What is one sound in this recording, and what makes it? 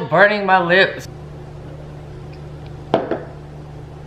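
A young woman sips from a plastic cup.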